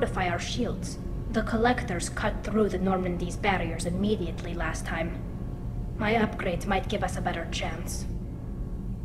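A woman speaks calmly through an electronic filter, close by.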